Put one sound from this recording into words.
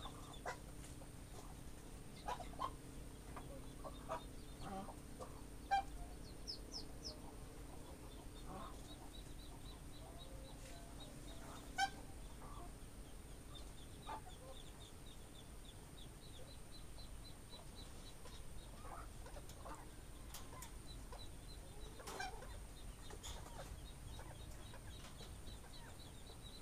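Rabbits shuffle and scratch about in a wire cage.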